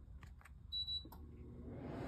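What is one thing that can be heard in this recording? A remote control beeps.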